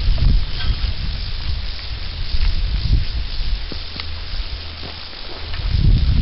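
A scythe swishes through tall grass.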